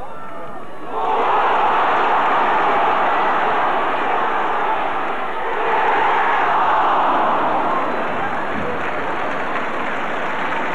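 A large stadium crowd roars and cheers loudly.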